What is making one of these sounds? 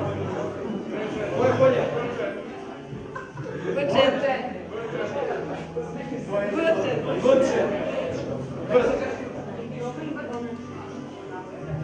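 A young man speaks through a microphone.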